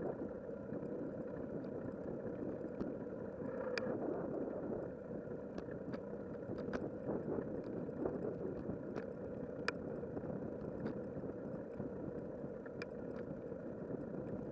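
Tyres roll and rattle over a rough paved path.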